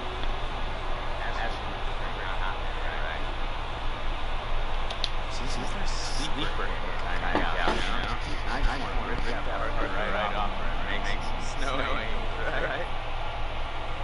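A young man talks cheerfully and teasingly.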